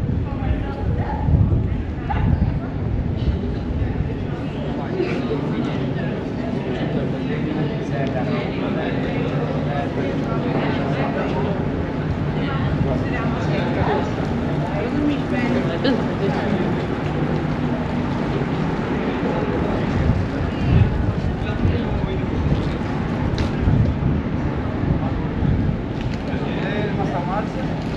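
Low wind rumbles across the microphone outdoors.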